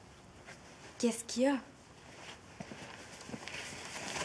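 A young woman speaks quietly at close range.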